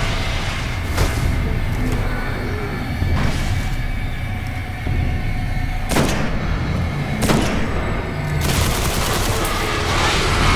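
A rifle fires in sharp bursts.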